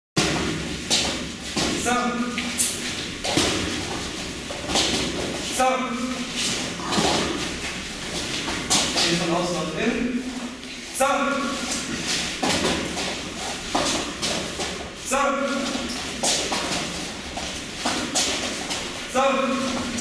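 Bare feet thump and shuffle on mats.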